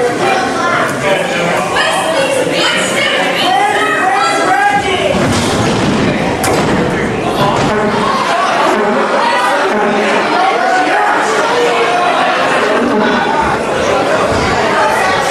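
A man speaks loudly and with animation into a microphone, echoing in a large hall.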